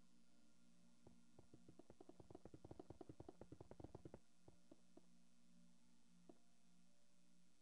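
Stone blocks crack and break apart in quick knocks.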